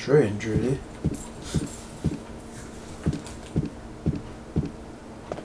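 Slow, heavy footsteps thud steadily on wooden stairs.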